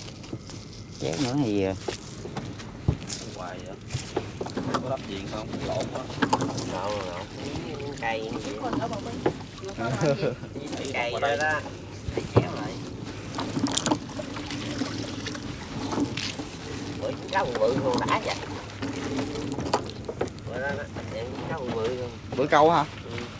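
A man and a woman talk with each other close by.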